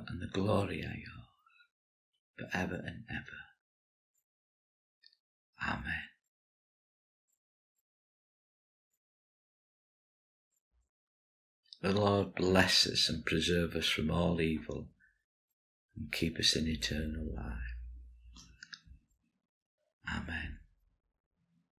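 An older man speaks calmly and closely into a microphone, with long pauses.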